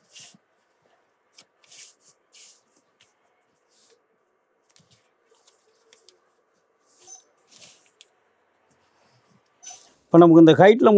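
Paper rustles and slides on a table.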